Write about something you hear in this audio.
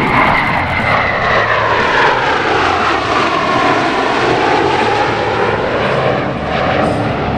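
Jet engines roar loudly overhead, their whine slowly falling in pitch as the aircraft pass.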